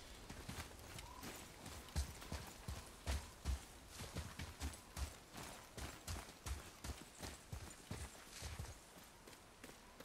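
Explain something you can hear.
Heavy footsteps thud on snow and dirt.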